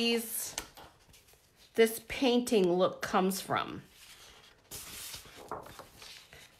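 Sheets of paper rustle as they are flipped.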